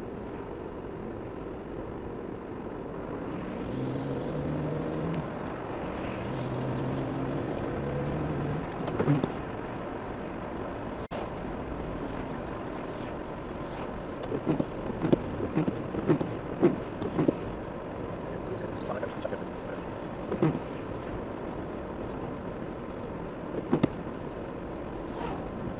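A car drives steadily along a road, with a low rumble of engine and tyres heard from inside.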